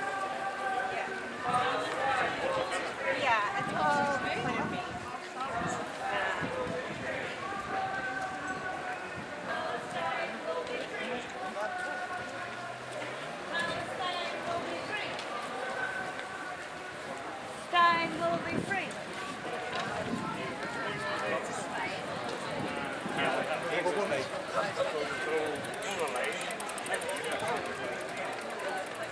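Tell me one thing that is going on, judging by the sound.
A crowd of men and women talks and chatters outdoors as they walk.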